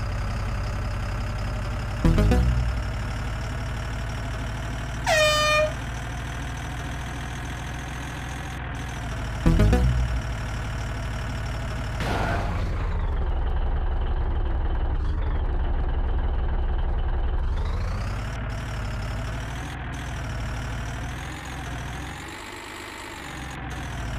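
A truck engine hums steadily and changes pitch as the truck speeds up and slows down.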